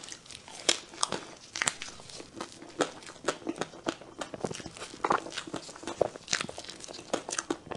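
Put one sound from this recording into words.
A woman bites and chews soft creamy cake with wet, smacking sounds close to a microphone.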